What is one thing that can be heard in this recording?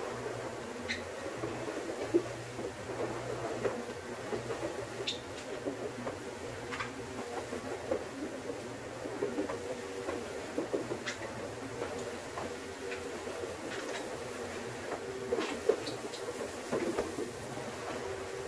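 A scrubbing pad swishes over a wet floor.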